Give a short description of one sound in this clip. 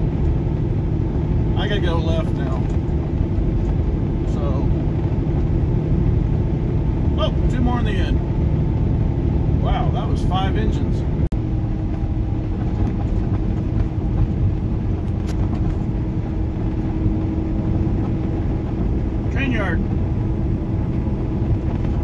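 Tyres roll over a highway with a steady low rumble.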